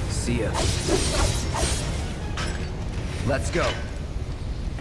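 Magic blasts crackle and burst in a fight.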